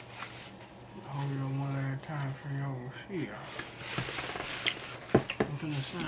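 Cardboard rustles and taps as a pizza box is moved.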